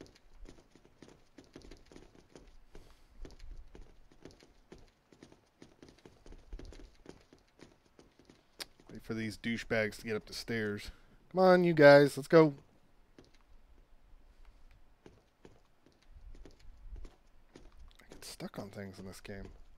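Footsteps thud steadily on hard floors and metal stairs.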